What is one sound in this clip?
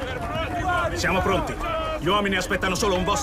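A man shouts up close.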